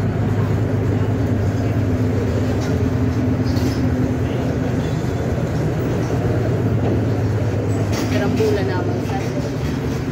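Footsteps thud on metal stairs.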